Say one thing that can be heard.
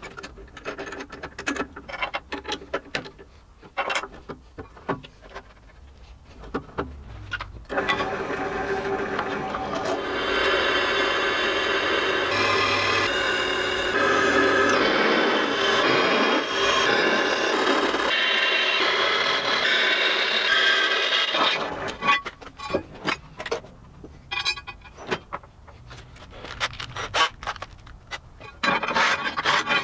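Metal parts clank and knock.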